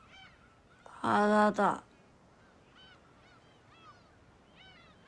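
A young woman groans softly.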